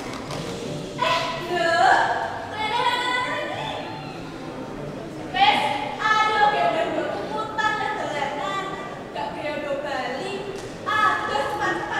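Young women sing together in a large echoing hall.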